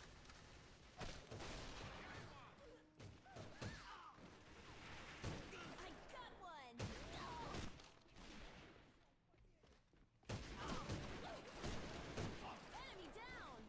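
Sniper rifle shots crack loudly, one at a time.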